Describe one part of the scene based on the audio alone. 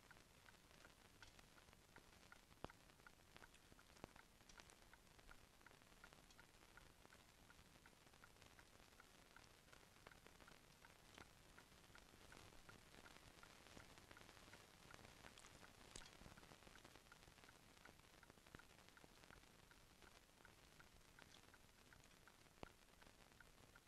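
A metal spoon scrapes and clinks against a bowl.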